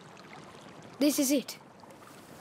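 A boy speaks softly nearby.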